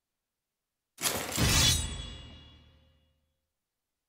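A deep booming whoosh sounds and slowly fades away.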